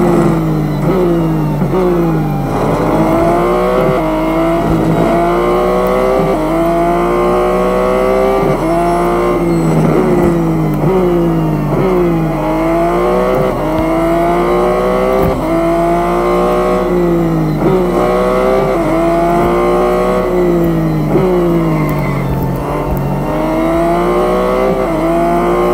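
A racing car engine roars, revving up through the gears and dropping as it shifts and brakes.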